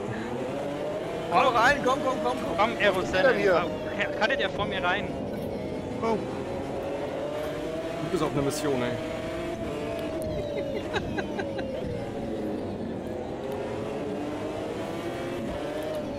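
A racing car engine roars steadily, its pitch slowly rising and falling.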